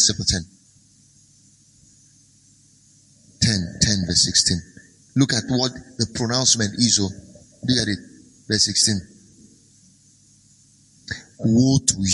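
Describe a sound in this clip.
A man speaks calmly and clearly into a microphone, with pauses between phrases.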